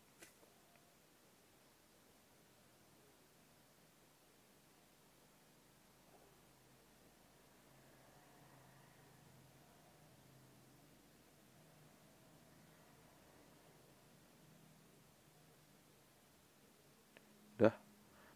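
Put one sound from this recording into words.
A small plastic casing clicks softly as fingers handle it.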